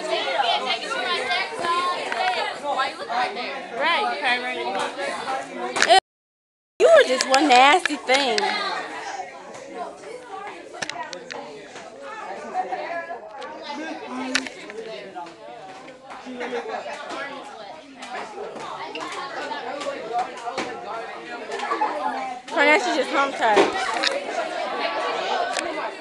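Teenage girls talk and laugh loudly close by.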